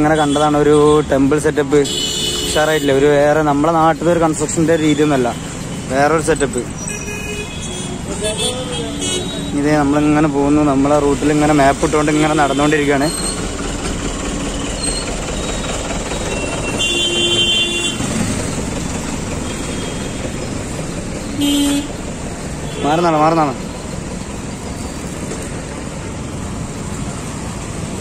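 Motorcycles and cars drive past along a busy street.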